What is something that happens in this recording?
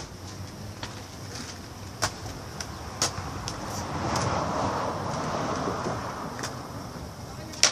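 Skateboard wheels roll over rough pavement.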